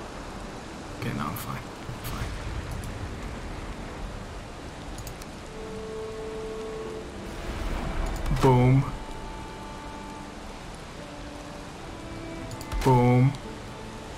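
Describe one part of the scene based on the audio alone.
Rain pours steadily outdoors.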